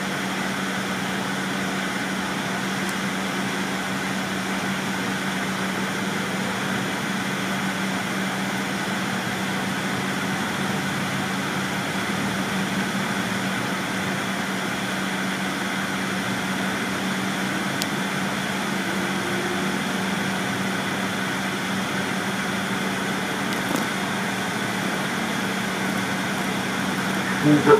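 A train hums and rumbles steadily from inside a moving carriage.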